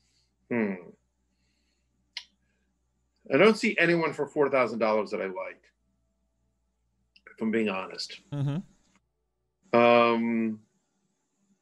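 A middle-aged man talks with animation close to a microphone, in short bursts.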